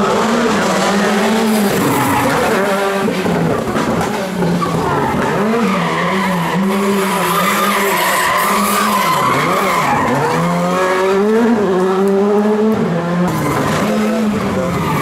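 A rally car engine roars, revving up and down as the car speeds around a bend.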